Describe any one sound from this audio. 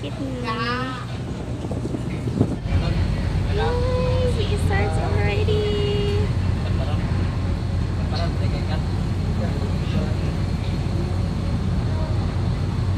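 A ship's engine rumbles low and steady.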